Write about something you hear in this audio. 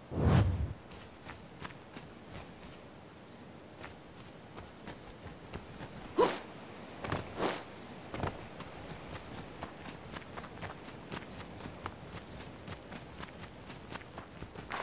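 Quick footsteps patter over grass and dirt.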